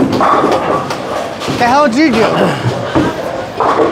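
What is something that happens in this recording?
A bowling ball rolls down a lane with a low rumble.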